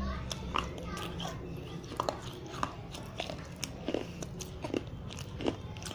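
A young woman makes wet mouth clicks and lip smacks very close to a microphone.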